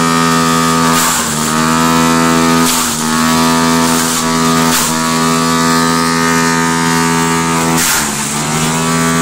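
Leafy branches crunch and rattle as a wood chipper shreds them.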